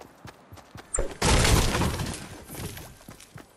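A pickaxe strikes and smashes wooden boards.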